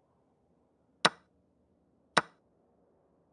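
A chess piece clicks sharply onto a board twice.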